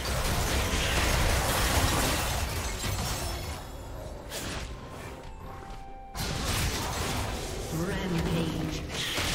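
Magic blasts and clashing attacks crackle and burst in a video game battle.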